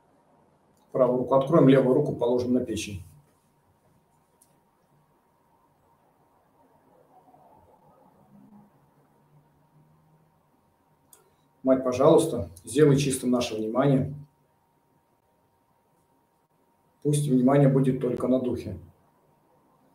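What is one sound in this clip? An elderly man speaks calmly in short phrases over an online call.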